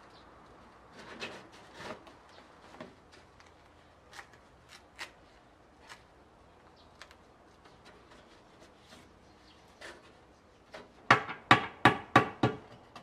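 Metal parts clink and tap.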